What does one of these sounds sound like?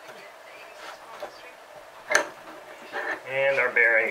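A metal hand press clunks as its lever is pulled down.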